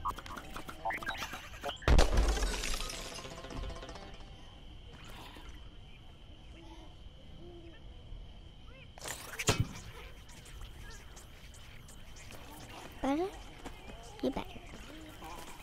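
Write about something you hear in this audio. A toy-like blaster fires rapid shots.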